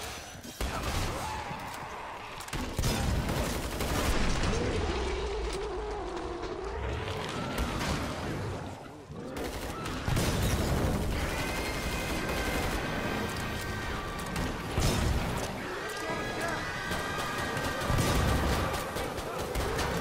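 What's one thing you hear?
A shotgun fires loud, booming blasts again and again.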